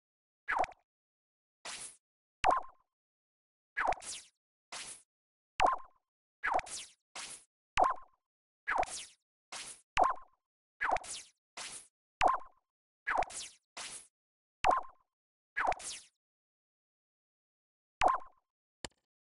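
Short electronic menu blips and chirps sound again and again.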